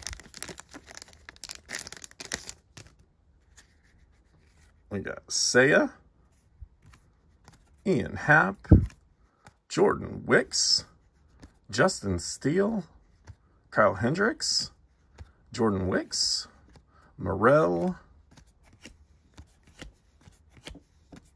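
Trading cards rustle and flick softly as they are shuffled by hand.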